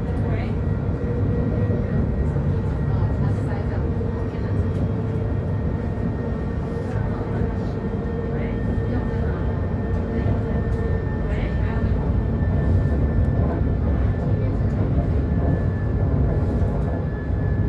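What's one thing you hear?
A vehicle's engine rumbles steadily from inside while riding along a street.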